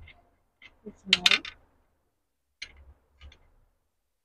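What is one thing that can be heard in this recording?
A small metal part clicks and knocks.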